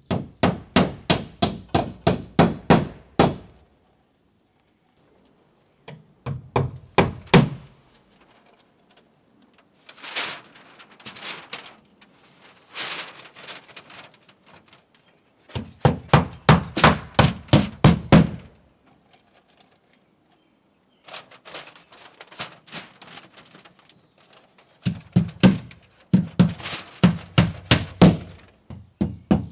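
A hammer strikes a wooden wall in quick bursts of blows.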